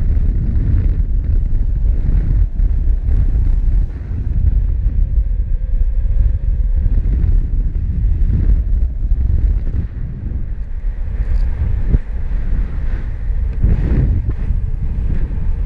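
Strong wind rushes and buffets loudly throughout, outdoors.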